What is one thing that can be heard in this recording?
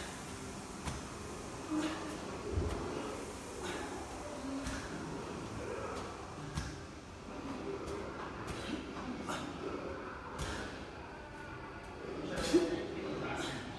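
A medicine ball thuds against a wall again and again.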